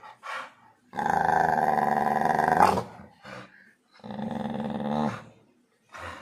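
A dog growls playfully close by.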